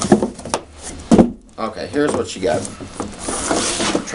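A wooden case knocks down onto a table.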